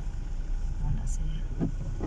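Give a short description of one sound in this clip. A windshield wiper sweeps across the glass.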